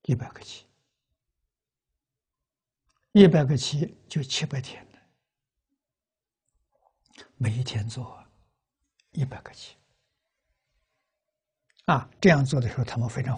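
An elderly man speaks calmly in short phrases with pauses, close to a clip-on microphone.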